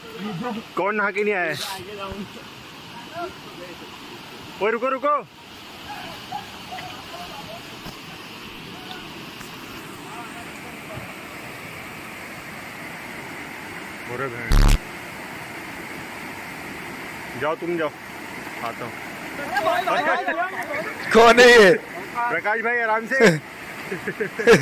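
Water rushes steadily over rocks.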